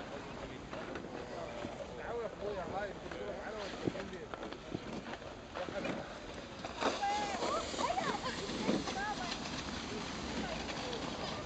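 A sled slides and scrapes over snow.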